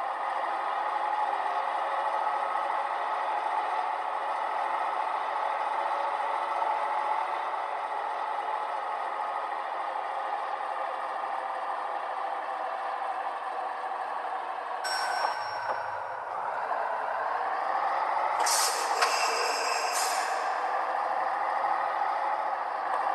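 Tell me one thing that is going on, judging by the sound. A truck engine hums steadily as it drives along a highway.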